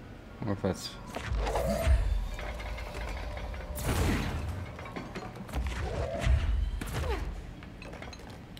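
Heavy crates crash and clatter loudly.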